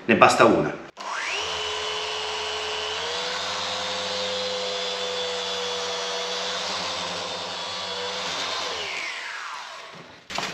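An electric polisher whirs steadily, then winds down.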